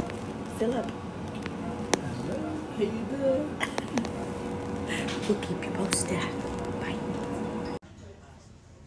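A woman talks with animation close to a phone microphone.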